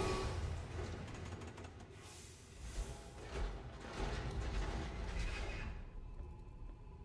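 A huge metal door grinds and rumbles open.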